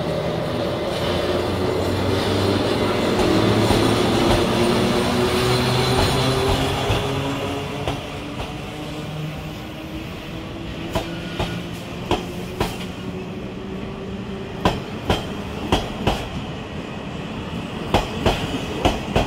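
Train wheels rumble and clack over rail joints as carriages roll past.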